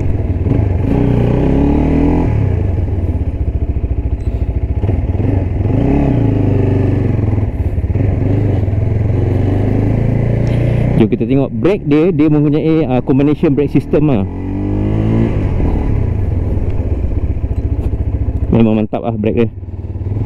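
A motorcycle engine idles and revs as the bike rolls slowly along.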